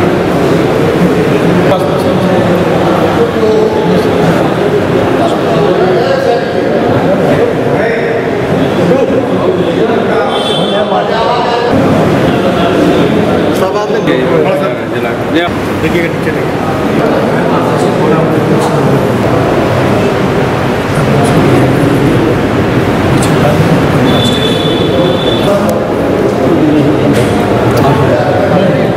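A crowd of men murmurs and talks close by.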